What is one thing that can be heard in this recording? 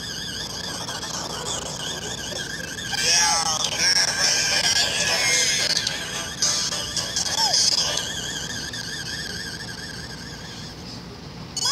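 Chiptune arcade music plays with a wavering melody.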